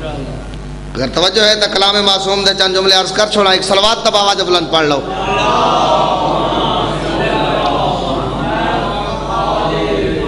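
A man speaks with strong feeling into a microphone, heard through loudspeakers.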